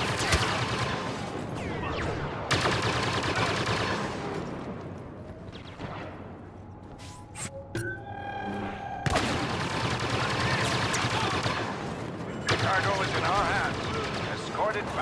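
Blaster guns fire in rapid bursts of sharp zaps.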